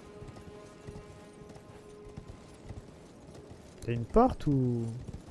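Horse hooves thud in a steady gallop on stone.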